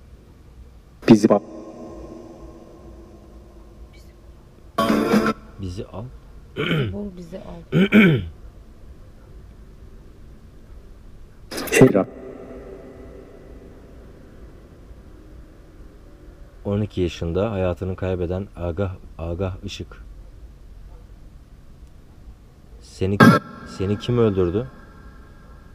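A man speaks quietly and calmly close by, in short bursts with pauses.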